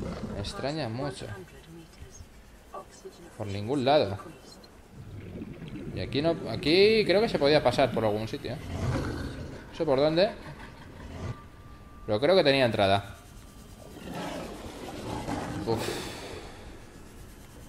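A small underwater vehicle hums softly as it glides along.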